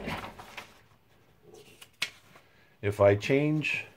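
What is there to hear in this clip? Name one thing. A sheet of paper rustles as a hand lifts it.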